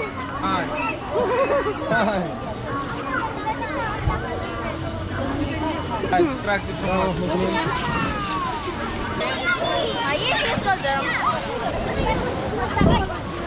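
Young girls talk and giggle close by.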